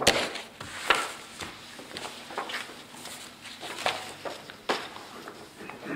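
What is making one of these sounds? Paper rustles and crackles close by.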